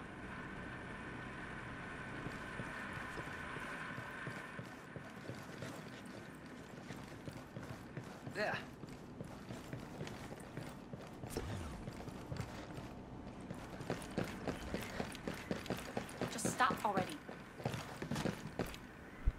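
Footsteps walk on a hard floor and climb stairs.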